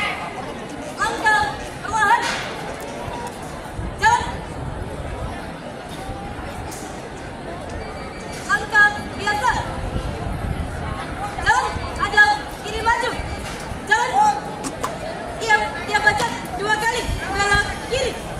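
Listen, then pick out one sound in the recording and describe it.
A young woman shouts drill commands outdoors.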